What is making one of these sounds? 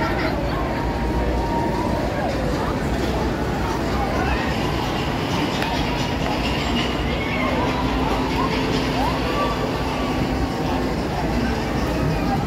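Riders scream together on a swinging amusement ride.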